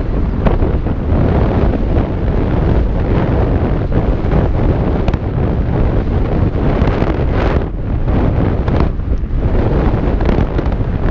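Bicycle tyres roll and crunch over a dirt trail at speed.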